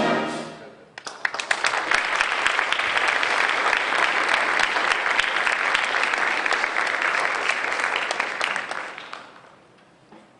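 An audience applauds loudly in a large hall and then dies away.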